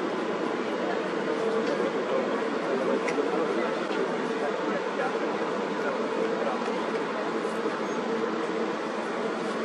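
Water churns and splashes below.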